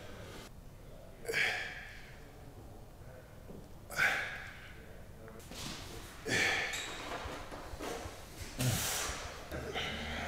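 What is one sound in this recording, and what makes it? A man grunts and breathes out hard with effort, close to a microphone.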